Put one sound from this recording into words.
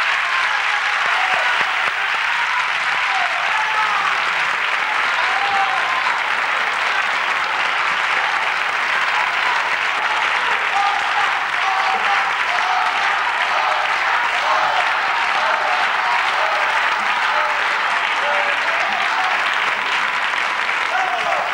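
A band plays music in a large hall.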